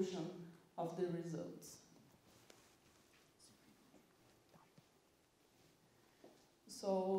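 A woman speaks through a microphone in a large room, pausing between phrases.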